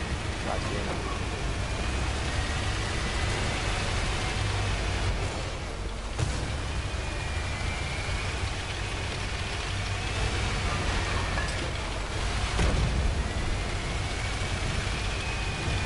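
Tank tracks clank and grind over cobblestones.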